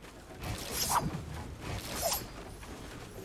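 A pickaxe strikes wood with sharp thwacks.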